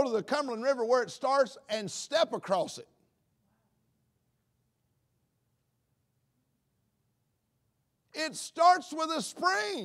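A man speaks calmly through a microphone, pausing between phrases.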